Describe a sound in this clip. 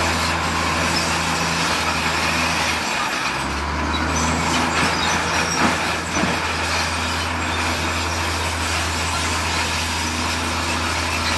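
A bulldozer engine rumbles steadily nearby.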